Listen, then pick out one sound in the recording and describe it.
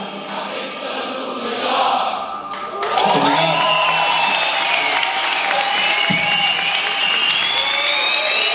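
A live band plays loudly in a large echoing hall.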